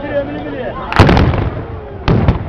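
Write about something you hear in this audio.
A volley of musket shots booms out loudly.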